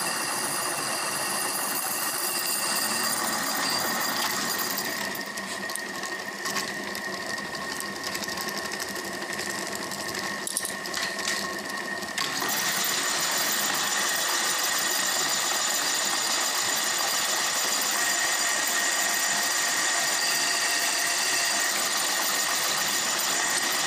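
A metal lathe runs with a steady whirring hum.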